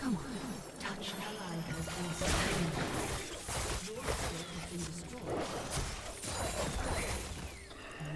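Video game combat sounds clash and crackle.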